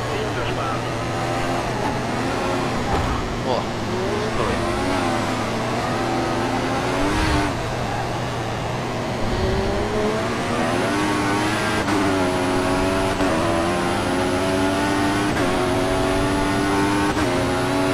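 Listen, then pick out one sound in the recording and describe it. A racing car engine whines, dropping in pitch when braking and rising as it speeds up through the gears.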